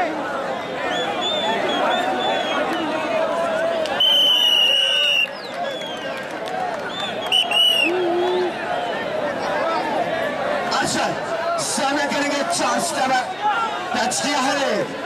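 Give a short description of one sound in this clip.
A large outdoor crowd cheers and chatters loudly.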